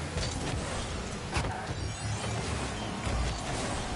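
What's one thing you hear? A rocket boost roars loudly.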